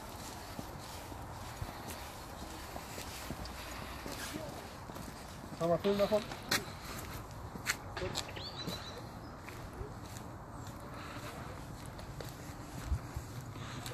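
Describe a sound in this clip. Footsteps scuff on pavement and gravel outdoors.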